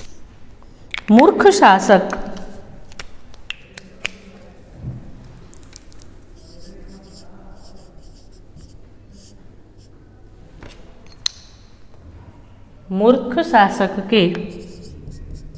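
A young woman speaks in short bursts.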